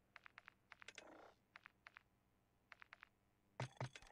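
Controller buttons click rapidly.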